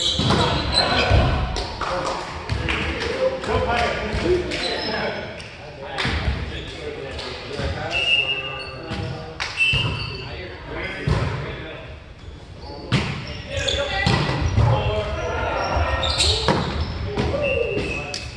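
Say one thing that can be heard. Young men call out and talk to one another in a large echoing hall.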